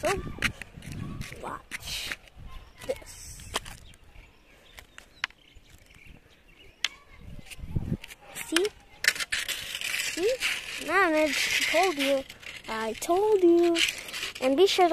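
A young boy talks close by in a high, sing-song voice.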